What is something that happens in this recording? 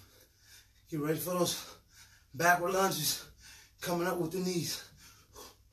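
A man nearby speaks briefly with effort.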